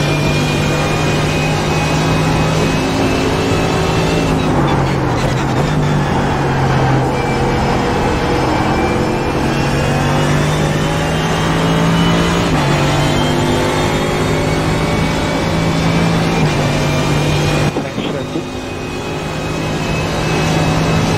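A racing car engine roars loudly, its pitch dropping through downshifts and climbing again through upshifts.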